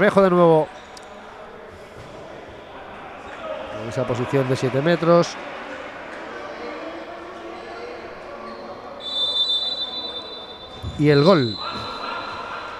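Young men shout loudly across an echoing sports hall.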